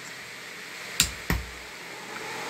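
A power switch clicks on with a low thump.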